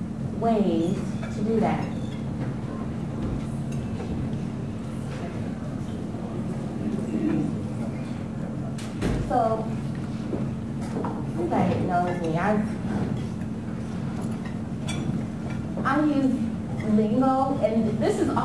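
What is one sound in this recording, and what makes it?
A young woman speaks calmly into a microphone in a large room.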